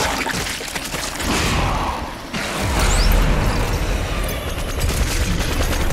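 A creature's body bursts wetly.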